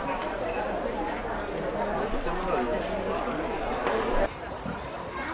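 A crowd of people murmur and chatter indoors.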